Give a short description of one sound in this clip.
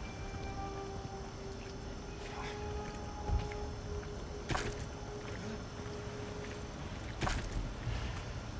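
Water sloshes and splashes as someone wades slowly through it.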